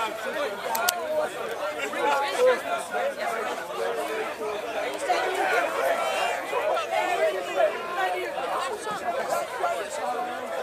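A large crowd of men and women chatter loudly outdoors.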